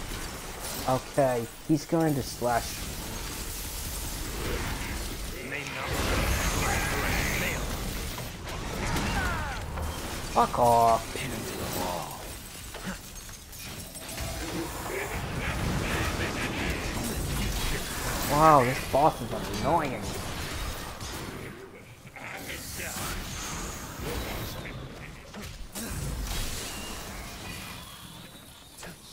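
Game combat sounds clash, whoosh and crash.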